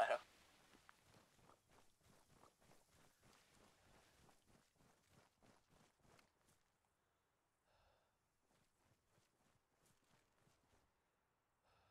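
Footsteps rustle steadily through tall grass.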